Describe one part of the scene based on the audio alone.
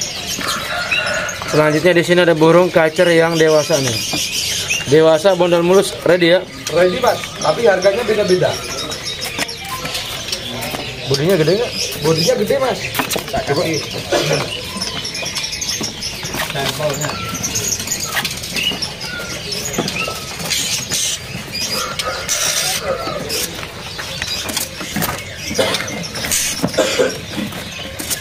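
Caged songbirds chirp and whistle.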